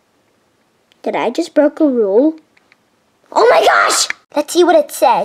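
A child speaks in an animated, silly character voice close by.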